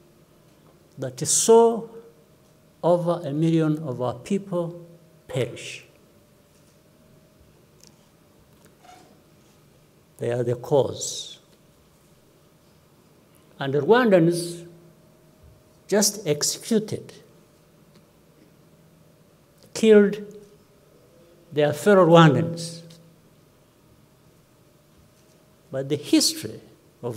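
An elderly man speaks slowly and calmly into a microphone, with long pauses.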